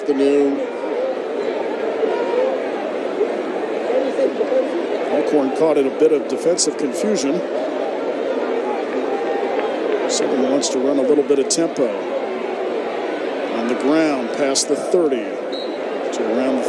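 A crowd murmurs and cheers in a large outdoor stadium.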